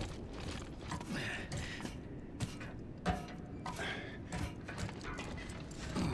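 Metal ladder rungs clank as someone climbs.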